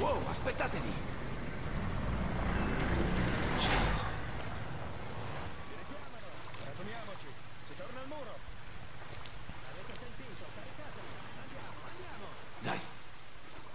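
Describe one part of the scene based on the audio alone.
Footsteps splash and slosh through shallow water.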